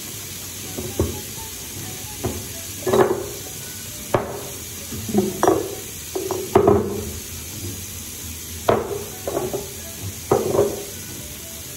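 Objects knock and clatter against a hard surface.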